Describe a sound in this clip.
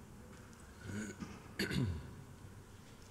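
A man speaks calmly into a microphone in a large, echoing room.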